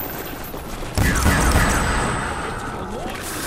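A ray gun fires with a buzzing zap.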